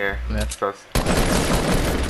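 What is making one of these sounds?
A gun fires a sharp shot.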